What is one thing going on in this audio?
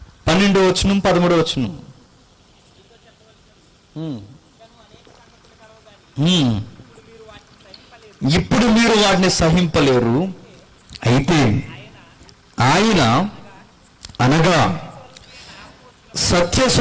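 A young man speaks through a microphone in short, loud bursts.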